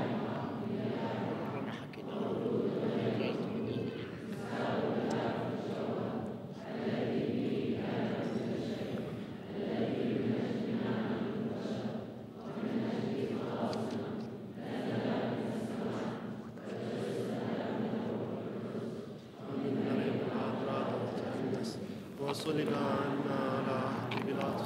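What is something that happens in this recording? An elderly man chants a prayer into a microphone in a reverberant hall.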